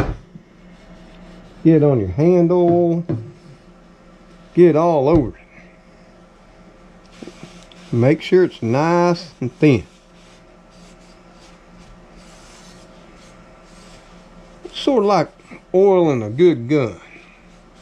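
A cloth rubs against an iron pan.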